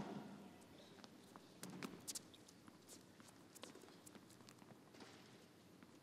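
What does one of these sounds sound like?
A tennis ball bounces on a hard court several times.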